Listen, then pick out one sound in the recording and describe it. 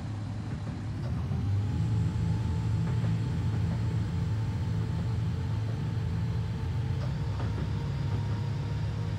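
An electric train motor whines and rises in pitch.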